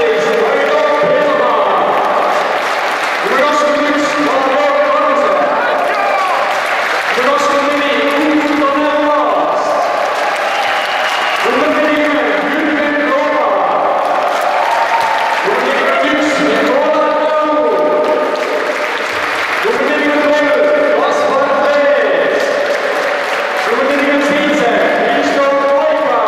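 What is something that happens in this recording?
A group of men sing together in a large echoing hall.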